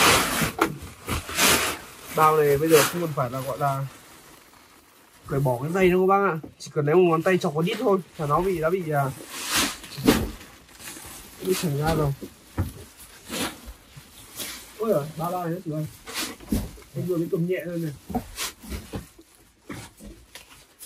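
Plastic sacks rustle and crinkle as they are handled.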